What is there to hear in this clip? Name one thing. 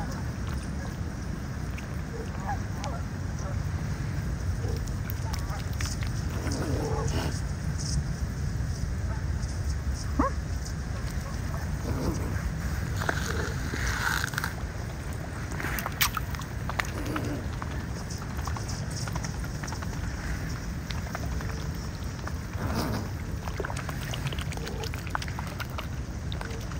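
A swan dabbles and splashes softly in shallow water as it feeds.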